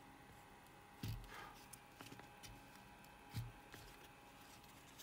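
A circuit board knocks and rustles as it is moved on paper.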